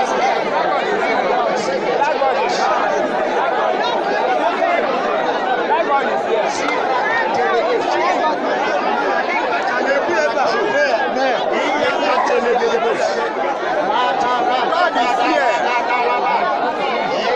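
A crowd of men and women sings and cheers loudly outdoors.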